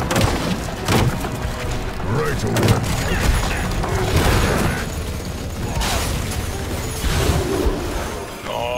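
Heavy impacts thud and crash.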